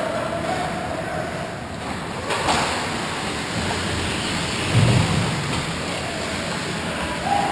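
Skate blades scrape and hiss on ice nearby.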